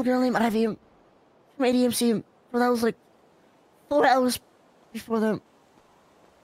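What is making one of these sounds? A man speaks in short bursts through a microphone, with animation.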